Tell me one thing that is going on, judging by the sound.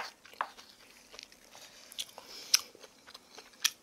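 A wooden spoon scrapes and clinks against a wooden bowl.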